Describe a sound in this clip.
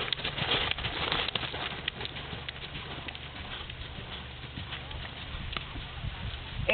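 A horse's hooves thud on soft dirt close by, then fade as the horse trots away.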